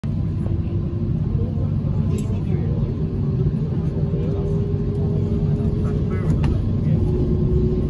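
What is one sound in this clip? A subway train rumbles steadily along the track.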